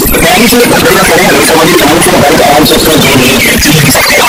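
A man speaks into a microphone.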